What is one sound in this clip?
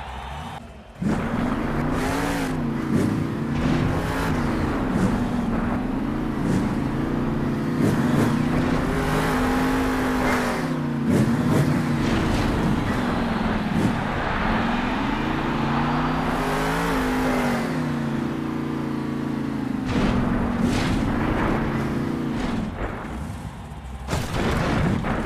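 A monster truck engine roars and revs up and down.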